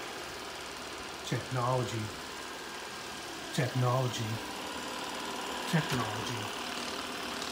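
A robot vacuum hums steadily as it moves across the floor.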